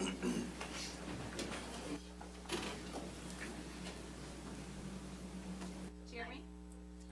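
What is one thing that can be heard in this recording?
Several adults talk at a distance in a large room.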